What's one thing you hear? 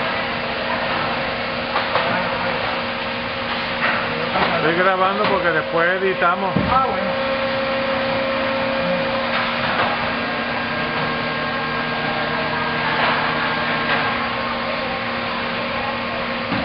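A large machine hums steadily.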